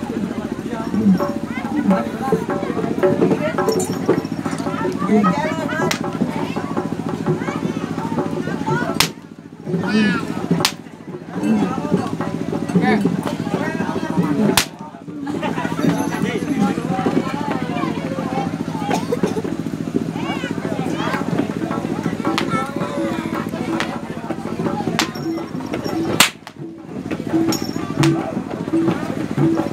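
A crowd of young men talks and calls out nearby outdoors.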